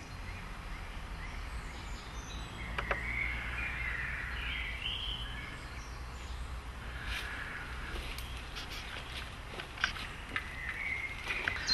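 Footsteps rustle through dry leaves.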